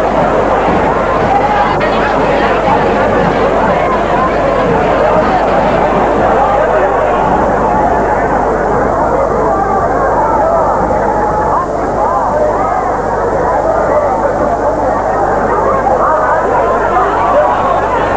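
A crowd of people chatters loudly all around outdoors.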